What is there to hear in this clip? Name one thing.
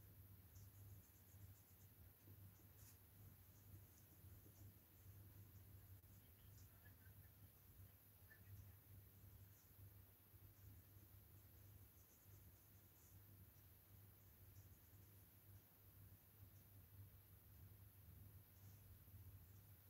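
A small brush softly strokes a hard surface.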